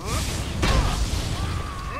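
Electricity crackles and zaps in sharp bursts.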